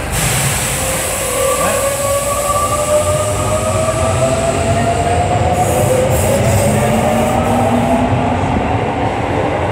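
A train's motors whine in rising tones.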